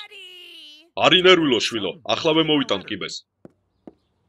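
A man speaks gruffly in a cartoon voice.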